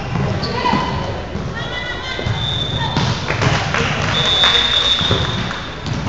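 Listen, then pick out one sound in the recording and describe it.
A volleyball is struck with sharp thuds in an echoing hall.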